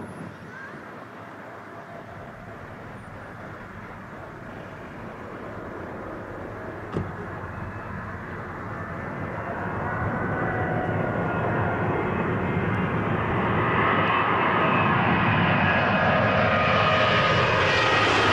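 A Boeing 777 twin-engine jet airliner roars louder as it approaches to land.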